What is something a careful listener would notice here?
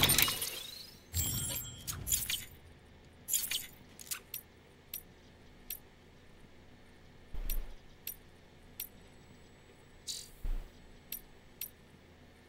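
Menu clicks and soft chimes sound in short bursts.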